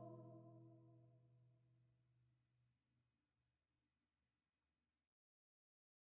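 A lute chord rings and slowly dies away.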